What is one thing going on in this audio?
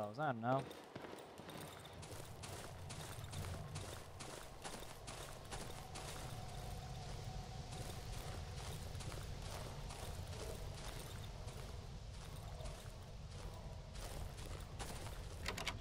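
Footsteps crunch softly on rough ground.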